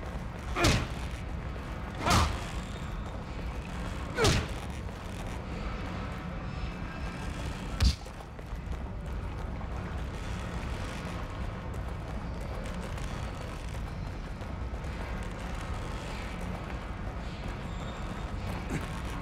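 Footsteps crunch on a rough floor.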